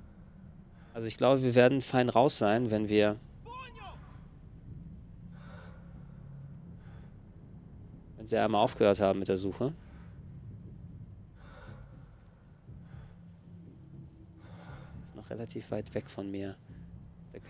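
A young man talks into a microphone with animation, in short bursts.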